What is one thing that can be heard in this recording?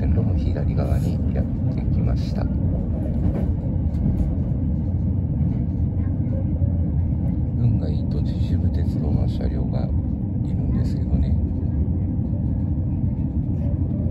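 Train wheels click and rattle over rail joints.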